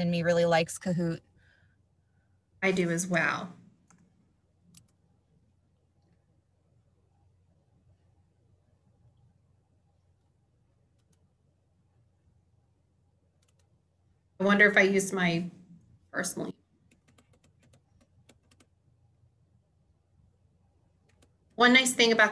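A woman speaks calmly in short phrases through a computer microphone.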